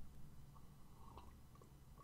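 A man sips a drink close by.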